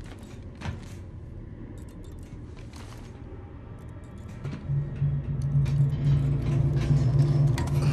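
Boots clang on the rungs of a metal ladder.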